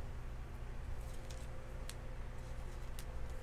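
A plastic sleeve crinkles softly.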